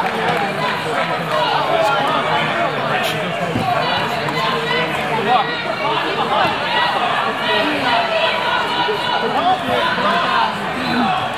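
A crowd of men, women and children chatters and shouts in a large echoing hall.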